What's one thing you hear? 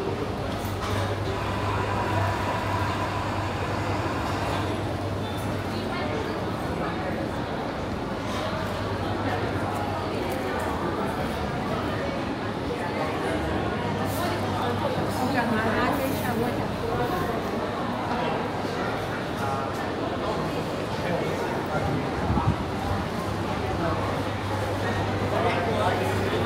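A crowd murmurs and chatters nearby in an echoing indoor space.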